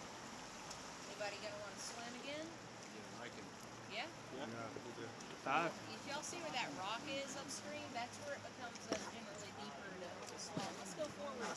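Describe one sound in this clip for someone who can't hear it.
A young man and a young woman chat casually close by, outdoors.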